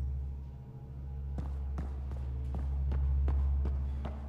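Footsteps tap on a hard metal floor.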